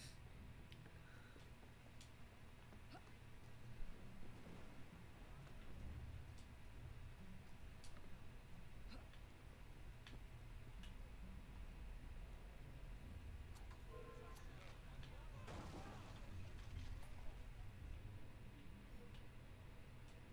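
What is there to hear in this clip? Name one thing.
Footsteps thud and scrape.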